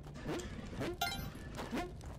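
A bright video game chime rings out as treasure is collected.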